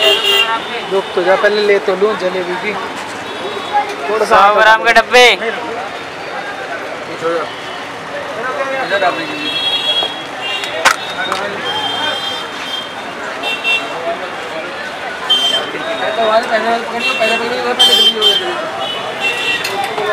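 Men talk nearby in a busy street.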